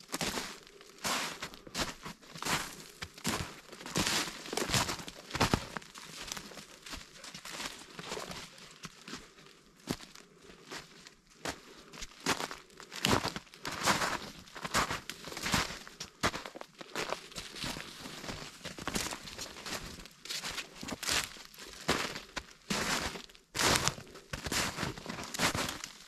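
Footsteps crunch through snow and dry leaves close by.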